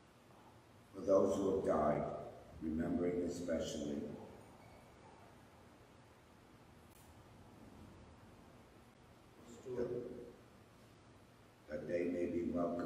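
An elderly man reads aloud calmly through a microphone in an echoing hall.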